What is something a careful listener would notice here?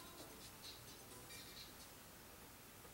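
A video game tune plays through a television speaker.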